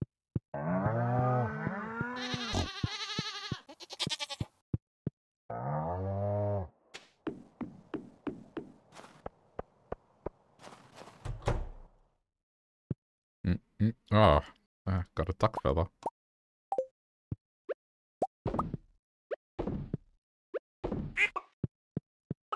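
Footsteps tap quickly on a wooden floor.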